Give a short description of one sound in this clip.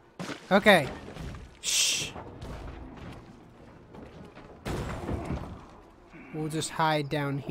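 Small footsteps splash through shallow water.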